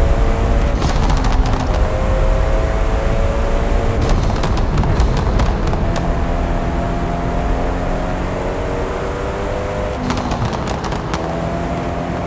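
Gear shift paddles click sharply in quick bursts.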